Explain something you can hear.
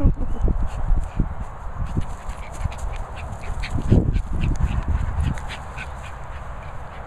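A dog pants heavily close by.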